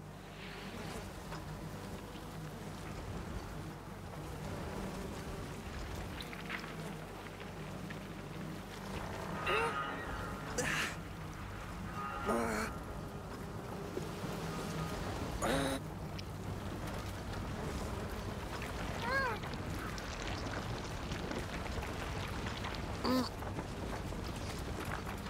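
A wooden cart rumbles and creaks as it is pushed over a dirt path.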